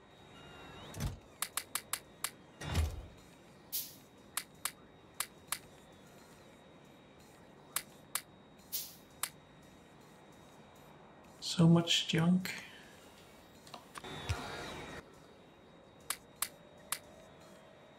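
Short game menu clicks tick again and again.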